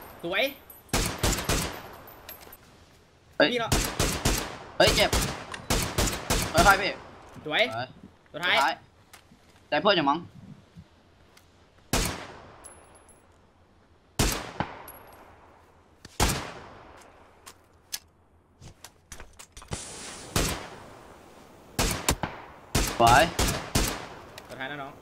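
A rifle fires loud, sharp shots that echo away.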